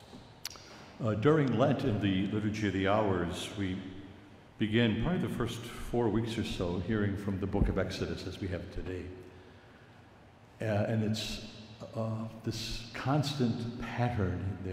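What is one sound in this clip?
An elderly man speaks calmly through a microphone in a large echoing room.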